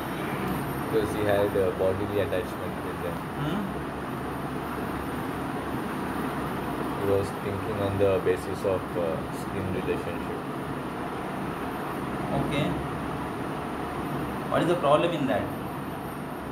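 Several men talk nearby in a room.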